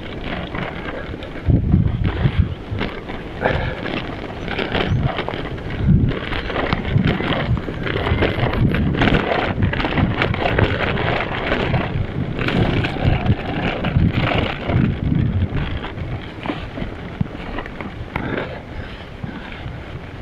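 Bicycle tyres crunch and rattle over a rough dirt track.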